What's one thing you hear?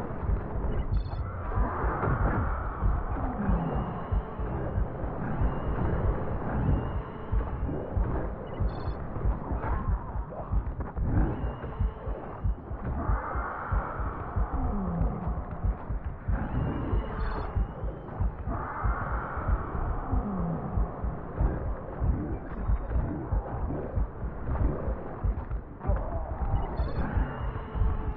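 Loud blasts and explosions rumble and crash without pause.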